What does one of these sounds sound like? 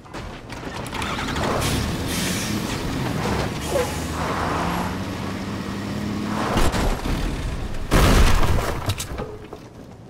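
A truck engine roars and revs as it drives.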